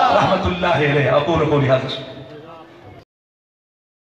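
A man speaks forcefully through a loudspeaker, echoing outdoors.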